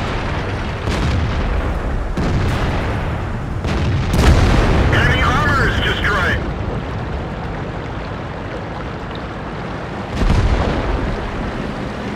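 Water splashes and churns as a tank drives through it.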